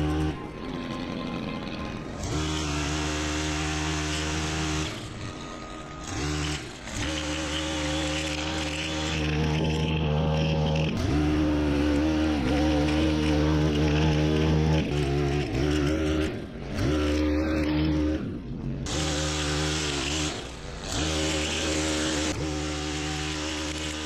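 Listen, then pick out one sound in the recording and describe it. A petrol string trimmer whines loudly close by, its engine rising and falling.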